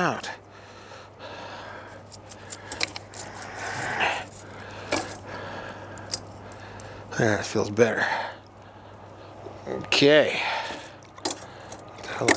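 Thick oil sloshes in a bowl.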